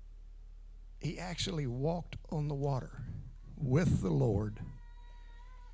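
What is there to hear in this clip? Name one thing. An elderly man speaks calmly into a microphone, heard through loudspeakers.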